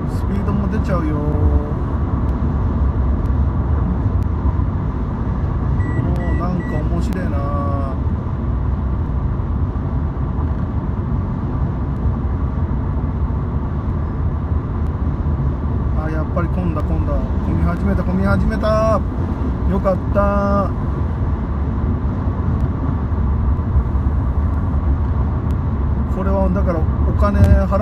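A car's engine hums steadily as it drives along a freeway.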